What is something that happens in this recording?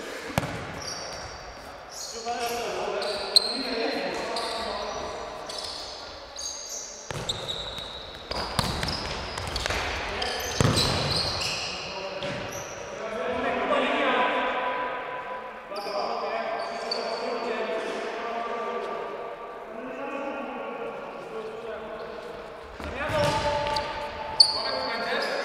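A ball thuds off a player's foot and echoes in a large hall.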